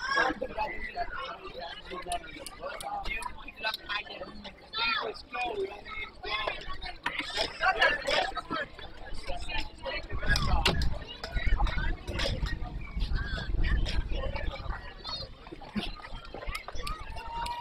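Young boys shout and chatter outdoors at a distance.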